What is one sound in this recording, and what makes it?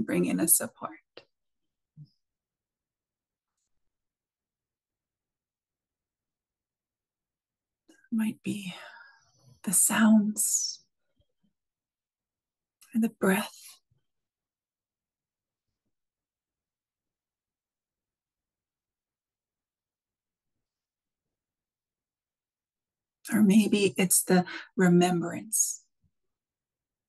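A woman speaks calmly in bursts over an online call, with long pauses between.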